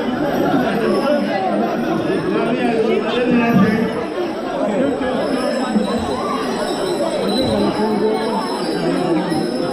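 A crowd of people sings together in a large echoing hall.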